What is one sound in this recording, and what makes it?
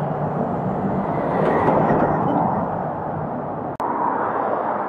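Traffic rumbles past on a nearby road.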